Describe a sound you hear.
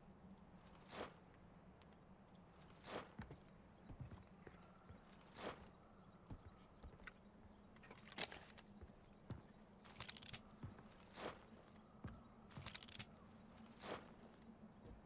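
Footsteps thud on hard ground and wooden boards.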